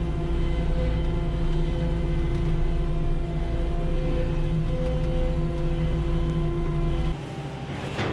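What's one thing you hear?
Bedding sprays out of a spinning spreader with a rushing hiss.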